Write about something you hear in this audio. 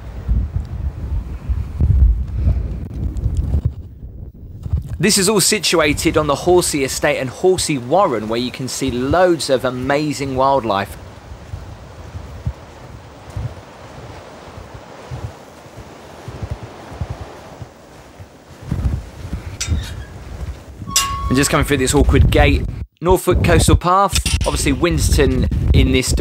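Wind gusts outdoors, rustling through tall grass.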